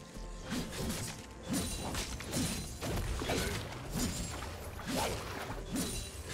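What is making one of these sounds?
Fantasy battle sound effects clash and crackle as game characters fight.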